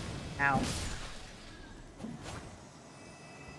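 A sword swings with a sharp whoosh.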